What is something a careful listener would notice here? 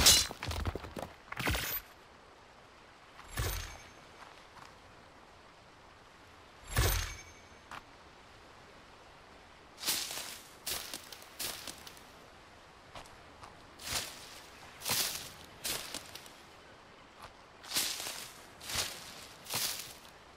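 Footsteps crunch on sand.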